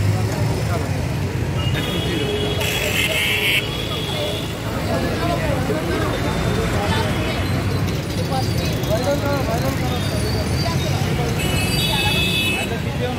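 Street traffic hums and honks in the background.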